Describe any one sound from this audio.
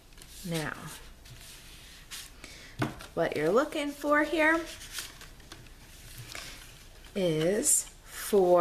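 Stiff card paper rustles and slides under hands.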